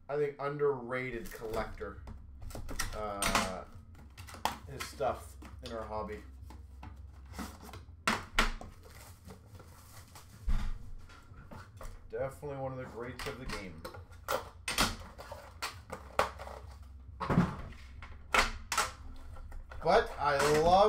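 Cardboard packaging rustles and bumps as it is handled up close.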